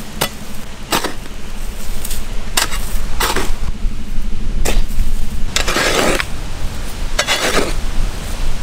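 A hoe chops into hard dry earth with dull thuds.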